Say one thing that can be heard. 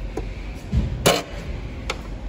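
A plug clicks sharply as a hand handles a cable connector.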